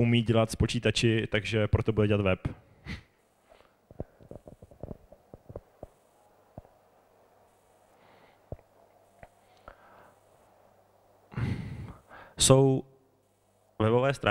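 A man speaks with animation through a microphone in a room with some echo.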